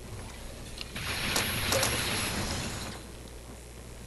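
An energy gun fires with a loud crackling hiss.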